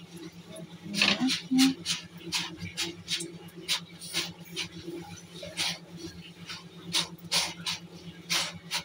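A cloth presses a puffing flatbread on a hot griddle.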